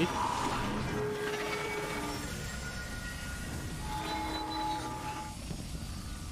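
Electronic tones hum and chime steadily.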